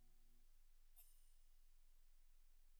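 A bright electronic menu chime rings once and fades.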